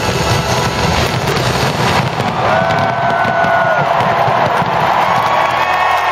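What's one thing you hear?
Fireworks crackle and bang overhead.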